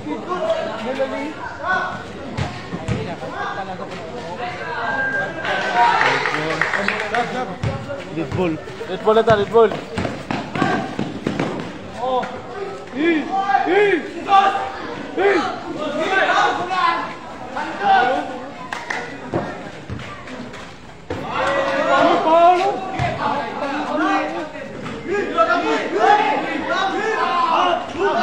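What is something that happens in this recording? A crowd of young men shouts and chatters.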